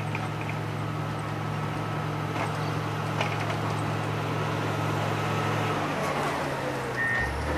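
A grader's diesel engine rumbles steadily as it drives closer.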